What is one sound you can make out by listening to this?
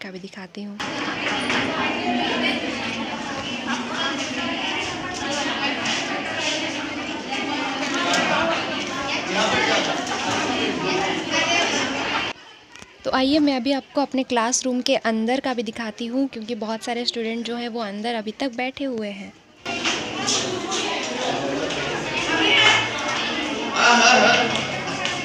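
Many young women chatter and talk at once in a room with echo.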